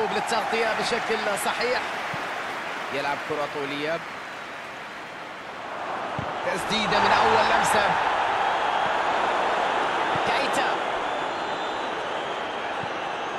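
A stadium crowd roars and cheers, swelling midway.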